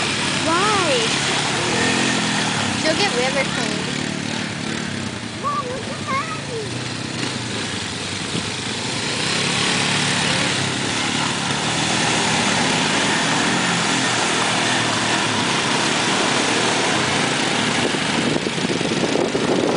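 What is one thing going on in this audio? A four-wheeler engine rumbles and revs nearby.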